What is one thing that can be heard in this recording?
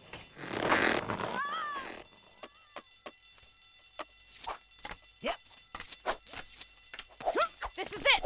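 Small game pickups chime and clink in quick bursts.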